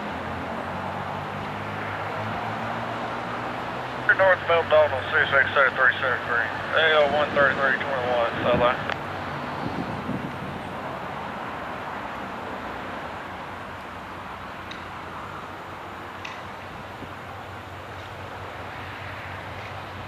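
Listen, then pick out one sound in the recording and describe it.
A diesel locomotive engine rumbles steadily as a train approaches.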